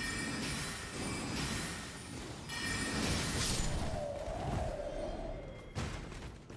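Weapons swing and clash in a fight.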